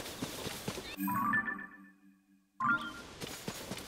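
A soft chime sounds, then another.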